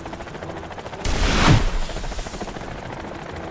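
A missile launches with a loud whooshing roar.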